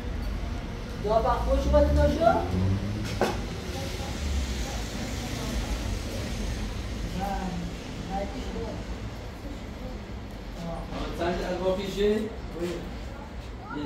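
A woman speaks nearby.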